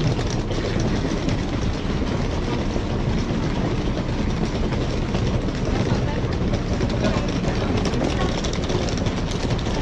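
Suitcase wheels rumble over paving stones.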